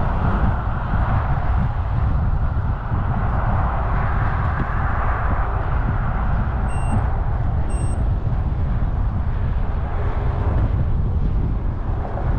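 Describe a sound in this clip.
Tyres hum steadily on smooth asphalt.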